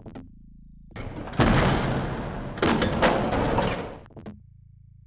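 A heavy metal door slides open with a grinding rumble.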